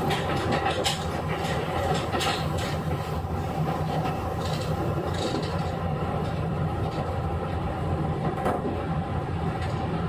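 A train hums steadily at rest nearby.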